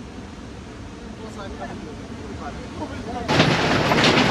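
A waterfall roars nearby.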